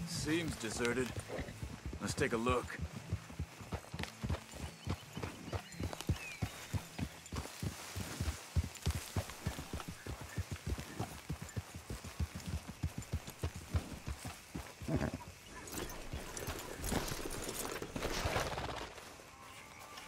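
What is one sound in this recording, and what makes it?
Horses' hooves thud rapidly on the ground as they gallop.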